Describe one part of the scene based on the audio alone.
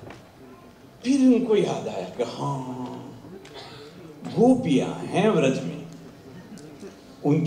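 An elderly man speaks calmly and with emphasis through a microphone.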